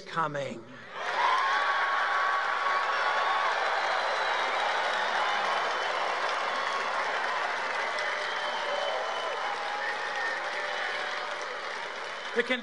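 A large crowd cheers and applauds loudly.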